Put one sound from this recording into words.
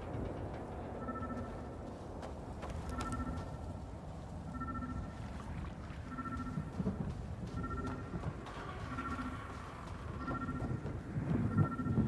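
An electronic signal beeps at a steady, repeating pace.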